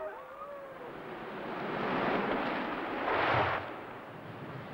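A tree creaks and crashes to the ground.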